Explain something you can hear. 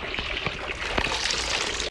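Water splashes and trickles in a small fountain.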